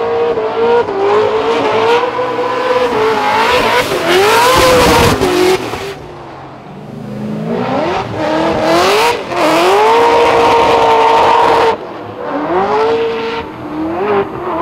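Race car engines rev loudly and bounce off the limiter.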